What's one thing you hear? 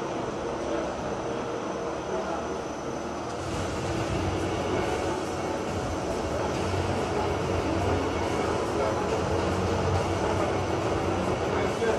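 An ice resurfacing machine's engine hums as it drives slowly across the ice.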